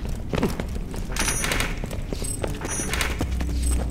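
A metal chest creaks open.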